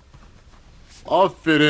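An elderly man speaks out loudly nearby.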